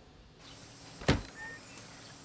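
A wooden door knocks open.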